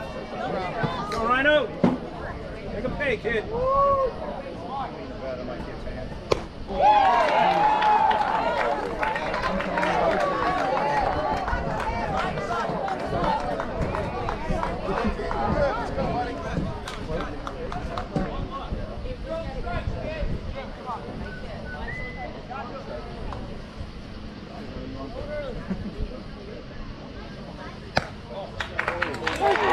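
Young players shout and cheer outdoors at a distance.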